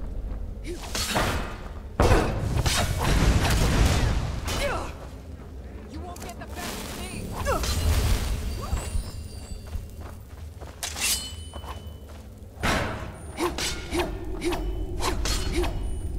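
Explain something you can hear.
Metal blades clash and ring sharply.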